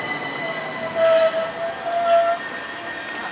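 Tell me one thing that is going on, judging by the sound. A train's brakes squeal briefly as it pulls in.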